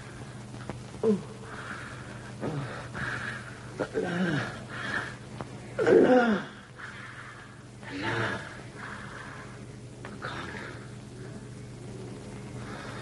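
A woman speaks softly and tenderly to a man.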